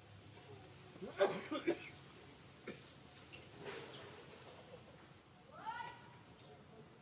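Young monkeys squeal and shriek as they scuffle.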